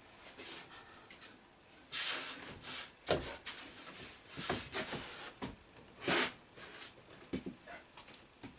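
Wooden pieces knock and thump as they are handled.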